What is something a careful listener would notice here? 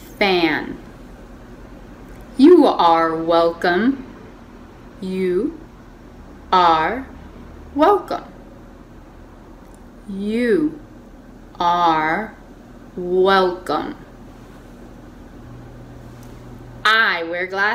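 A young woman speaks clearly and slowly into a close microphone, pausing between phrases.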